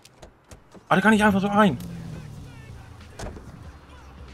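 A car engine starts and runs with a low rumble.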